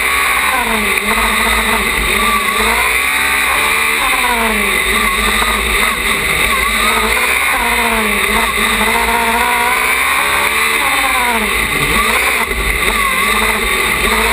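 A small racing car engine revs up and down loudly as it speeds through turns.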